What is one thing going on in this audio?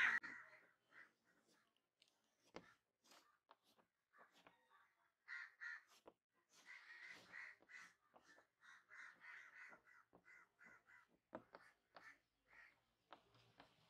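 Chalk taps and scratches faintly on a board.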